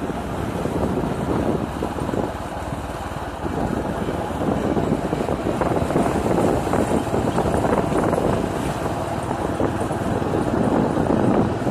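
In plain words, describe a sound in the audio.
Tyres rumble over a rough concrete road.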